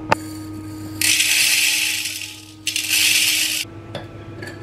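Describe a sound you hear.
Dry beans pour and rattle into a metal pot.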